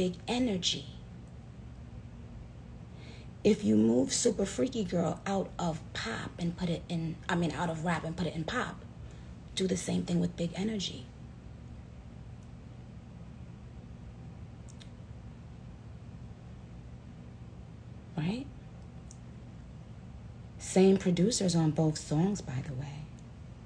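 A young woman talks casually and close up into a phone microphone, with pauses.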